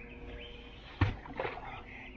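A heavy wooden post thuds down into the ground.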